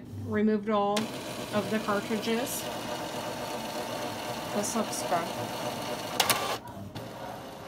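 A printer whirs and hums steadily as its mechanism runs.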